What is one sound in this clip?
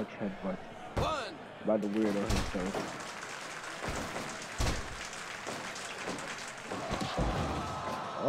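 Bodies slam heavily onto a wrestling ring mat with deep thuds.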